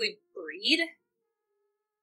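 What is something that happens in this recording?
A young woman exclaims with animation close to a microphone.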